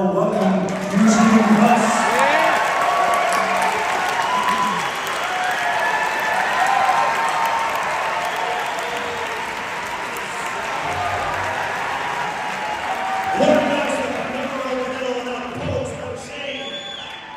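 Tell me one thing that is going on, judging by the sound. A crowd cheers, claps and whistles loudly.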